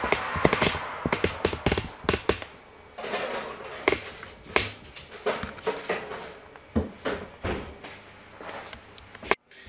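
Metal trays clatter and scrape in an oven.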